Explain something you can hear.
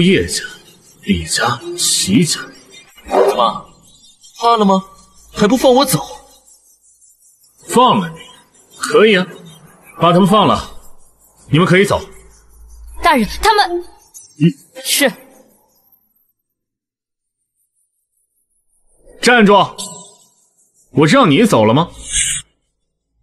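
A young man speaks with emotion, close by.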